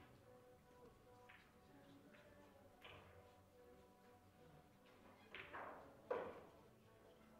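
Billiard balls click sharply against each other on a table.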